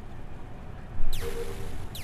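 A short electronic blast sounds as a game target is destroyed.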